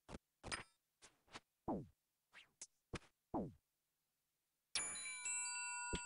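Short game combat sound effects hit in quick bursts, followed by a ringing chime.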